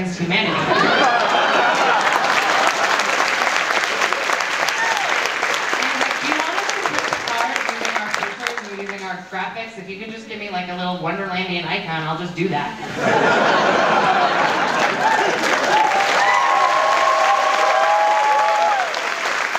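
A crowd of young people cheers and whoops.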